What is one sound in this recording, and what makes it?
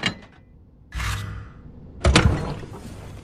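A heavy metal lid thuds shut.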